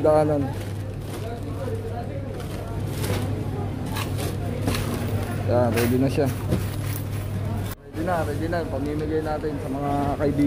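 Plastic bags rustle and crinkle as hands handle them.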